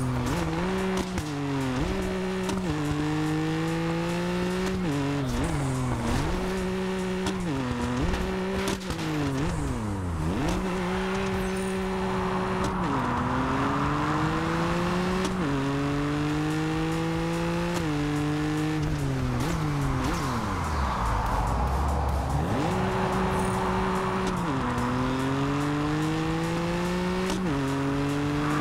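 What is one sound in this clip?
A car engine revs up and down through gear changes.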